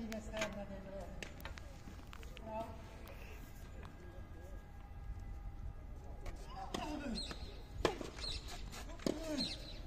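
A tennis racket hits a ball with sharp pops.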